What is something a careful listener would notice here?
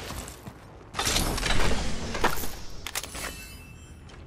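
A metal supply crate swings open with a heavy clank.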